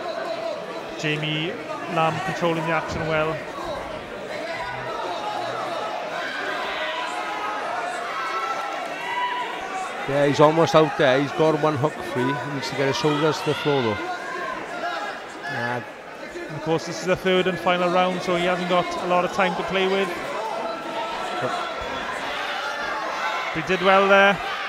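A man shouts instructions loudly nearby.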